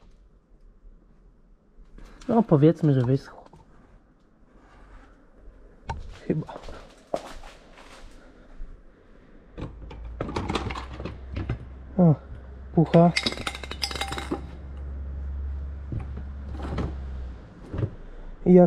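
A hard plastic panel knocks and scrapes as it is handled.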